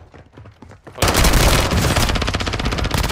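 A gun fires in a loud, rapid burst.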